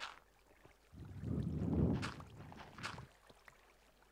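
Water splashes as someone swims through it.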